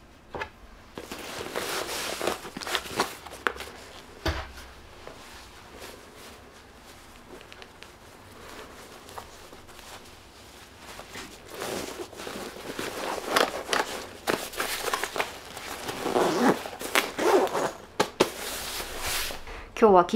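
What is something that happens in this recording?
Fabric rustles as hands rummage through a bag.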